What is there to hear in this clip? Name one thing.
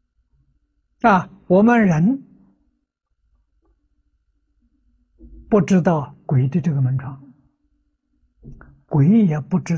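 An elderly man speaks calmly and slowly, close to a microphone, with pauses.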